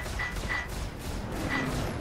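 Laser cannons fire.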